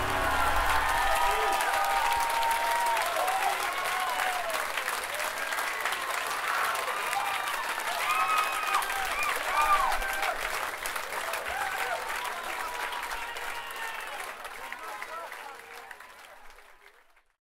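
A large crowd cheers and shouts loudly, then slowly fades away.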